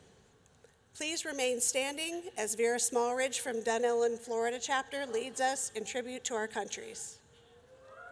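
A woman speaks with emotion into a microphone.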